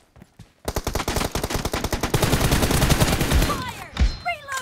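An assault rifle fires in rapid automatic bursts.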